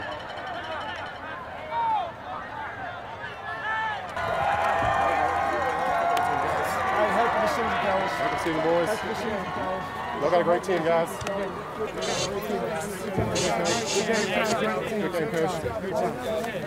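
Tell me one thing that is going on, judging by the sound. A crowd of people talks and cheers outdoors.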